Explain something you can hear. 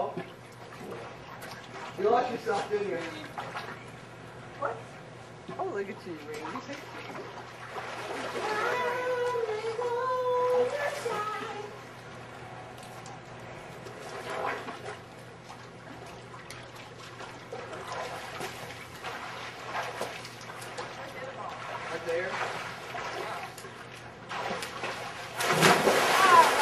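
Water splashes in a pool as children swim.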